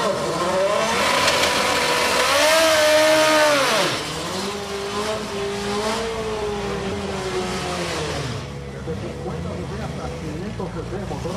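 Tyres screech and squeal as a car spins its wheels.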